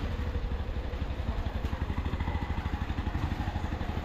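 An auto-rickshaw engine idles close by with a low, rapid putter.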